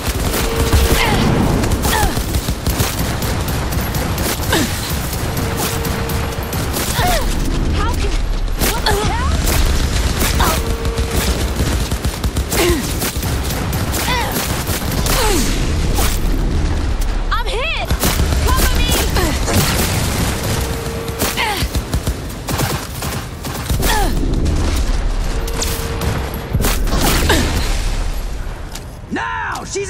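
Rapid gunfire bursts loudly again and again.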